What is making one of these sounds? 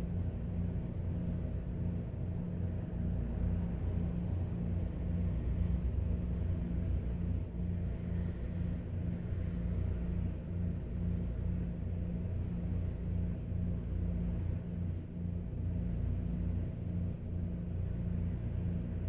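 A razor scrapes across stubble.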